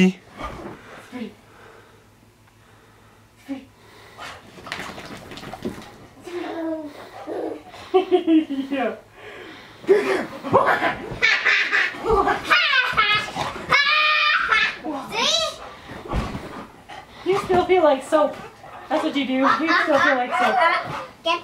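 A dog barks and yips.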